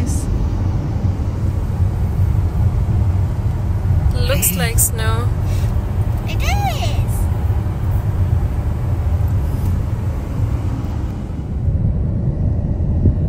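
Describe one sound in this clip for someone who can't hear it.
A car's engine and tyres rumble steadily on a road.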